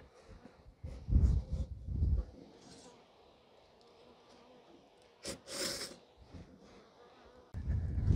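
A wooden stick knocks against a log with dull thuds.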